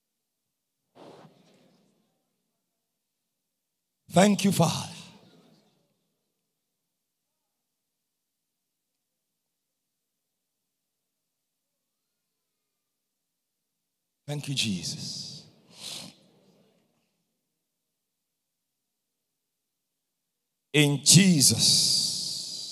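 A man speaks loudly and with energy through a microphone and loudspeakers, in short bursts separated by silence.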